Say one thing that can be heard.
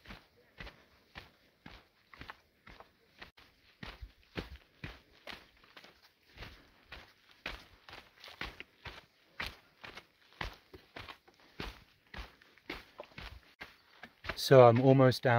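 Footsteps crunch on a gravel trail at a steady walking pace.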